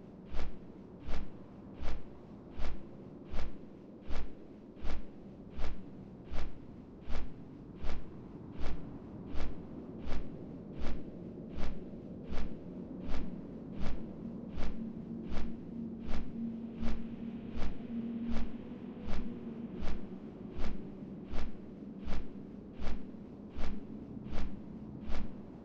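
Large wings beat in a steady, even rhythm.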